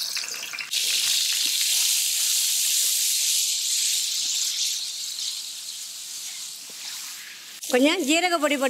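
Hot oil sizzles loudly in a pot.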